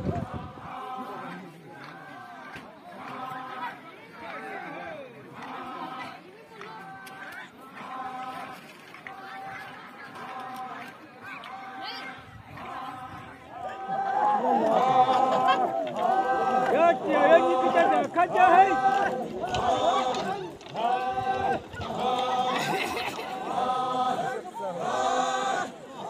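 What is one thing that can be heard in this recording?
A large group of men and women chant a rhythmic song together outdoors, louder and closer partway through.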